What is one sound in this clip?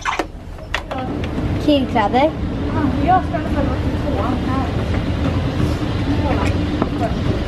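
An escalator hums and rattles steadily.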